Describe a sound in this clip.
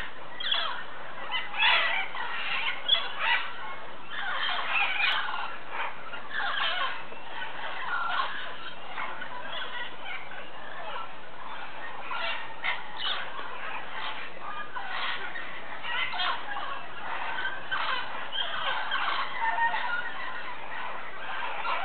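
A large flock of parrots squawks and chatters noisily.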